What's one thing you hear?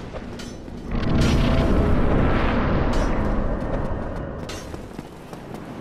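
A loud rushing whoosh swells and fades away.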